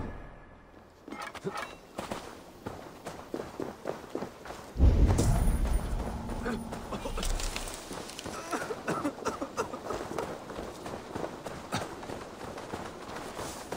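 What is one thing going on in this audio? Footsteps run quickly over grass and wooden planks.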